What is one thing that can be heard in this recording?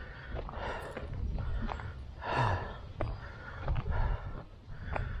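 Footsteps crunch steadily on a gritty path.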